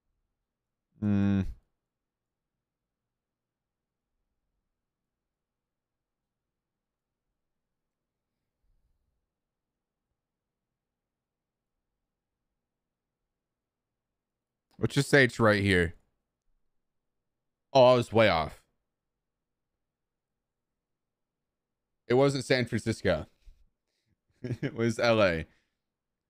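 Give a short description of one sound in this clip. A young man speaks in short bursts into a close microphone, with animation.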